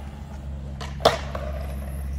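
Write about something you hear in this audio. A skateboard clatters sharply on concrete.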